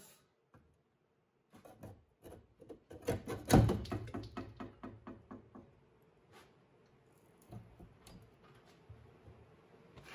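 Metal parts clink as a hand works on them.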